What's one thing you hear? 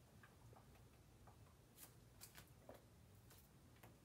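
Bare feet shuffle on a gritty floor.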